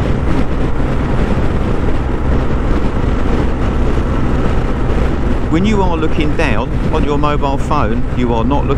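Wind roars steadily past a fast-moving motorcycle.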